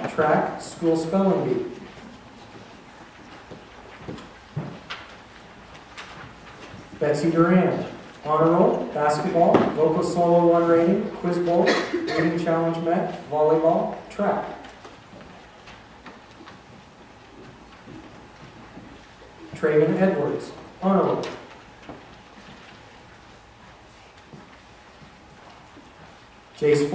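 A man speaks calmly into a microphone, heard through loudspeakers in a large echoing hall.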